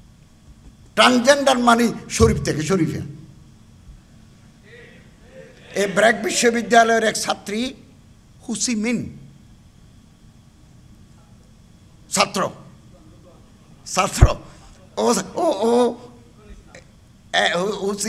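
An elderly man preaches forcefully into a microphone through loudspeakers, in loud bursts with pauses.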